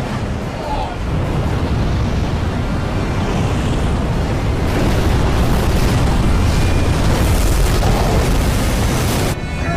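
A fiery explosion roars with a deep rumble.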